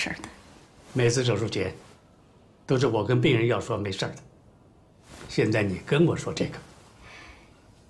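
An elderly man speaks warmly and calmly, close by.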